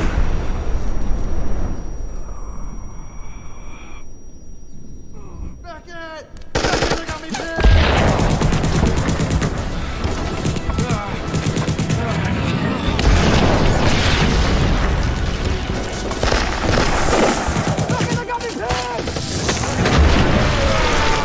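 An explosion booms and debris rains down.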